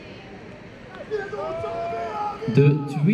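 Spectators cheer and shout outdoors.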